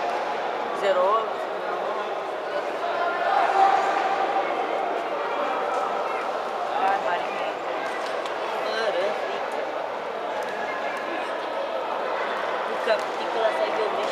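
Punches thud against gloves and bodies.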